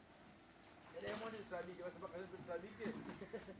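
A man talks nearby outdoors.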